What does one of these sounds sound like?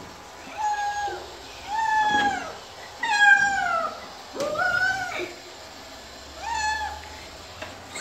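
A cat meows loudly and plaintively, over and over.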